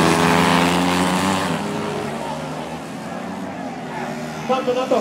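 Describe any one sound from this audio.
A motorbike engine whines loudly as it races past and fades.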